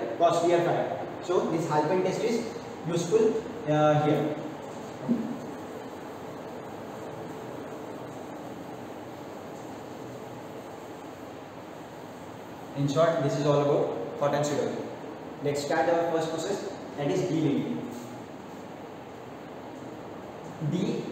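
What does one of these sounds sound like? A man lectures calmly and clearly, close by.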